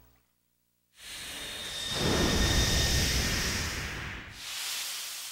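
A magical energy blast whooshes and roars.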